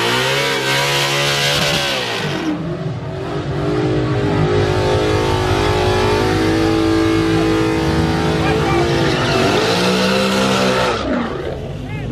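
A car engine roars loudly and revs up and down.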